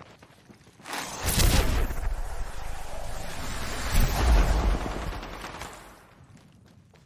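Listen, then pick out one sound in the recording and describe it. A loud rushing blast roars and slowly fades.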